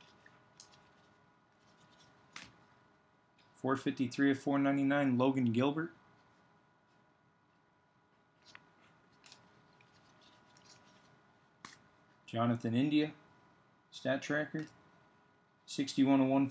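Trading cards slide and rustle softly as they are flipped through by hand.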